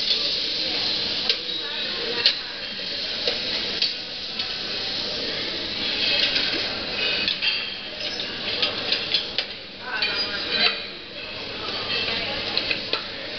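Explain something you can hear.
Food sizzles in hot pans.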